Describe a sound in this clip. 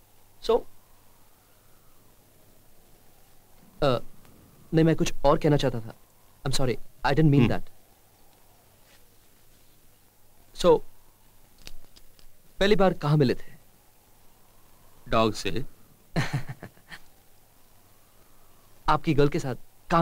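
A middle-aged man speaks quietly and calmly nearby.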